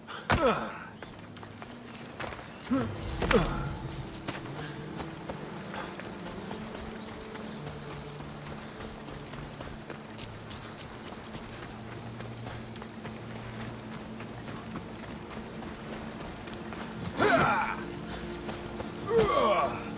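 Footsteps crunch over grass and sand.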